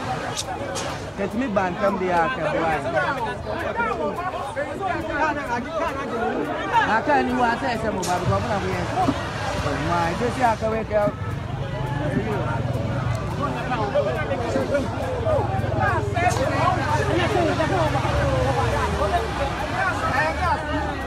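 A crowd of people shouts and clamours outdoors.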